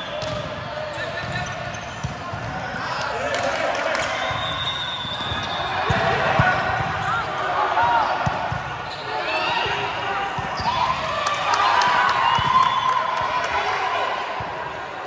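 Girls and young women call out and shout throughout a large echoing gym.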